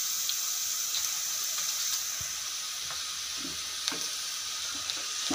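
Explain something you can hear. Onions sizzle steadily in a hot pot.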